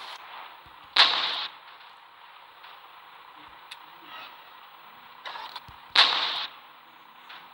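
A tank cannon fires with sharp, loud blasts.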